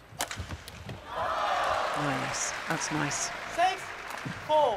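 A crowd cheers and applauds loudly in a large echoing hall.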